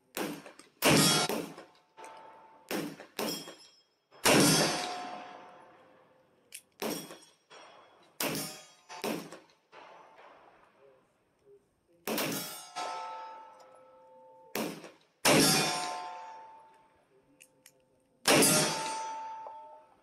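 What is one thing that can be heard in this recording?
Gunshots ring out one after another, echoing outdoors.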